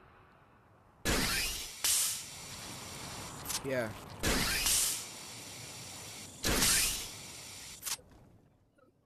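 A grappling line shoots out with a sharp whoosh.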